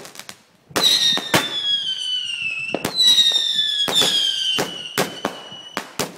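Firework rockets whistle as they fly up.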